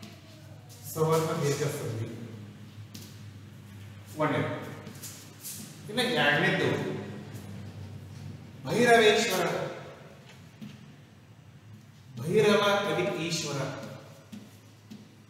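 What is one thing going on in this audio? An adult man speaks, explaining in short bursts.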